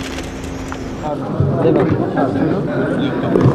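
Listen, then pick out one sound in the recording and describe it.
Men talk nearby in a room.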